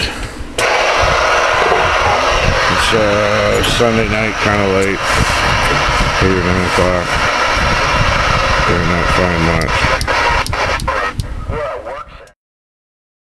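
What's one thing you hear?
A radio hisses with loud, steady static.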